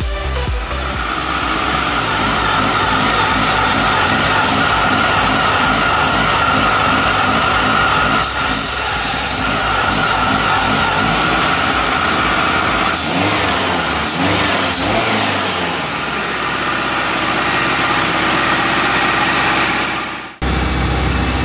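A car engine idles and revs as the throttle is worked.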